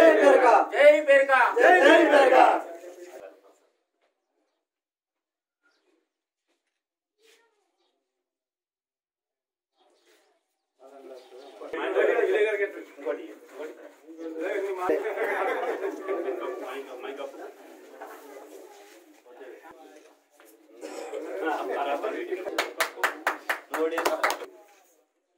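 Several men talk loudly close by.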